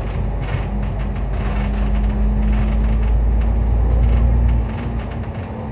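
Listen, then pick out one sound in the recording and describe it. A tram's motor hums loudly and then winds down.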